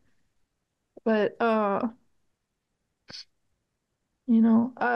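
A younger woman talks into a microphone.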